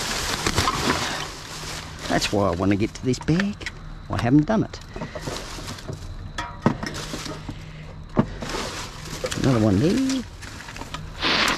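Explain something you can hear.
Plastic bags rustle and crinkle as hands rummage through rubbish.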